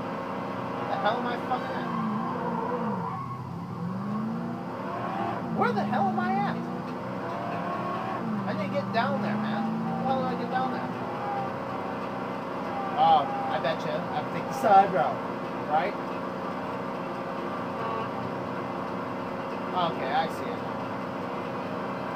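Car tyres screech sharply on the road.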